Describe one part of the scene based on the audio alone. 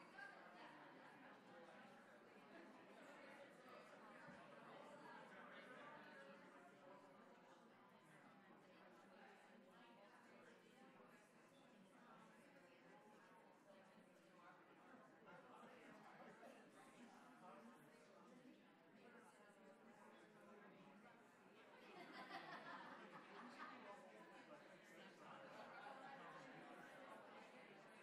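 A woman speaks calmly into a microphone over a loudspeaker in a large echoing hall.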